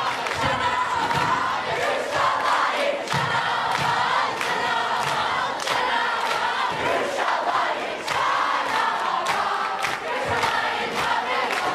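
A large crowd of young people shouts and chants loudly in an echoing hall.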